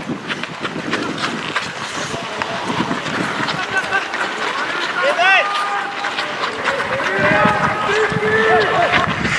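Sticks clack against a ball on the ice.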